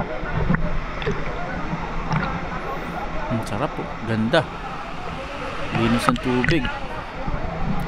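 Water splashes and laps around a swimmer.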